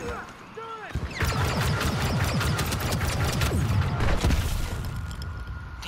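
Rapid blaster gunfire rattles loudly.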